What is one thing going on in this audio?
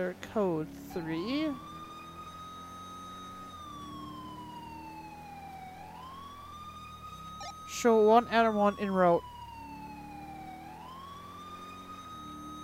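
A police siren wails, slowly rising and falling.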